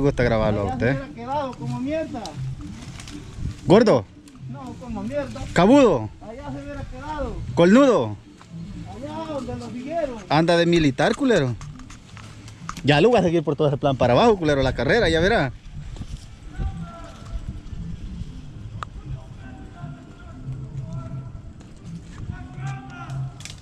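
Branches drag and scrape over dry ground.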